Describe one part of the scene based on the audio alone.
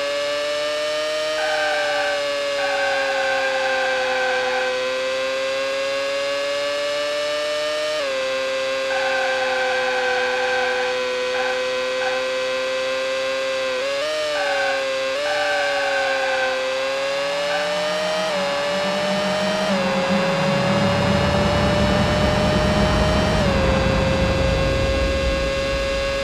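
A race car engine whines steadily at high revs, shifting pitch as the car speeds up and slows.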